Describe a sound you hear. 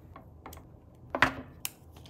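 A screwdriver turns a small screw.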